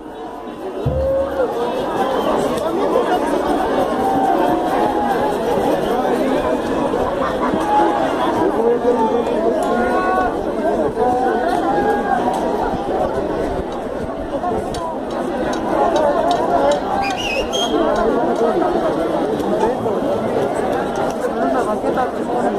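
Men and women call out with excitement among the crowd.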